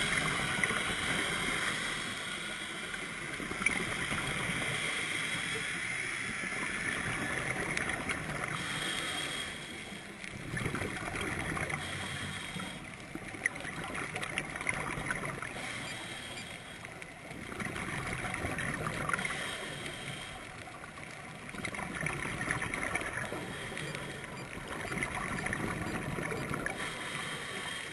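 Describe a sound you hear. Bubbles rush and gurgle in bursts underwater.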